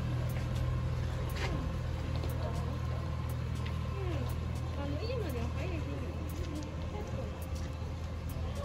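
A small boat's motor hums steadily on the water.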